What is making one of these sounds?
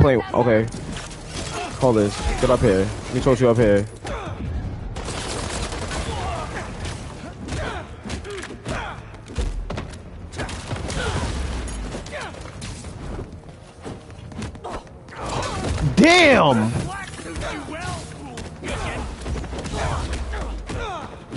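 Punches and kicks thud.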